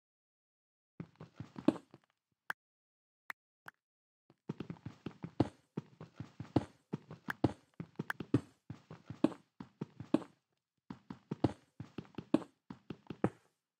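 A pickaxe chips and breaks stone blocks with quick repeated knocks.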